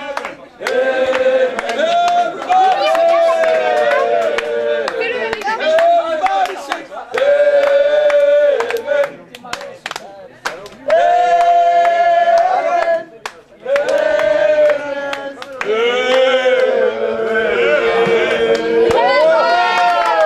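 A group of people clap their hands in rhythm.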